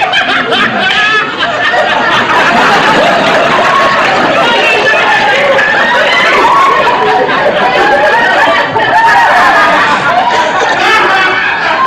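Several men and women laugh and talk loudly over each other.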